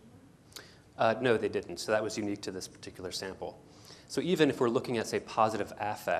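A man speaks loudly to an audience in a large echoing hall.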